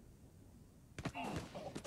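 A sniper rifle fires a loud shot that echoes briefly.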